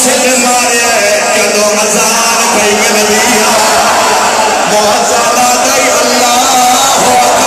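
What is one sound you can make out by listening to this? A man chants loudly through a microphone in an echoing hall.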